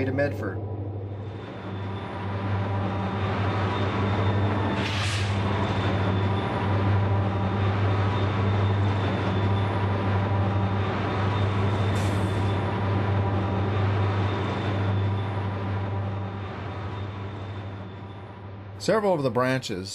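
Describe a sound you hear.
A diesel locomotive rumbles steadily as it passes close by.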